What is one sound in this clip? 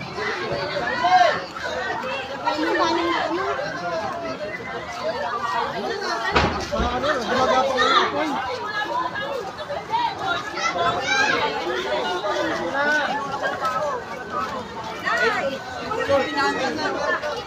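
A crowd of men and women shout and talk excitedly close by, outdoors.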